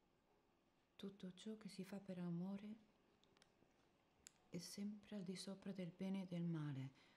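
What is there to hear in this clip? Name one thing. A young woman speaks quietly and sadly, close by.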